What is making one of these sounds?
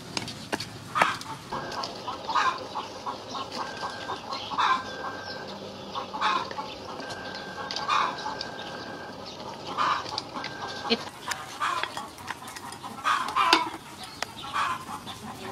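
A ladle knocks and scrapes against a metal pot.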